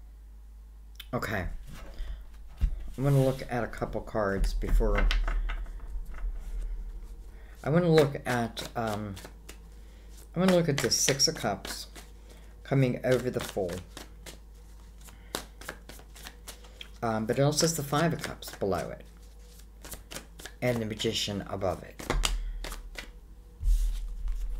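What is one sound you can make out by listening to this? Cards are shuffled in a person's hands, with a quick riffle and soft slapping.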